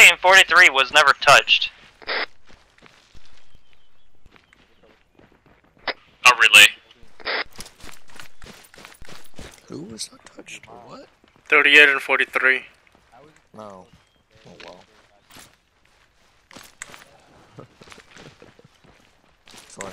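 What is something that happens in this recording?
Footsteps crunch quickly on dry ground.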